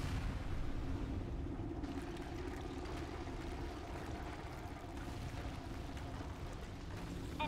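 A building collapses with a deep, steady rumble.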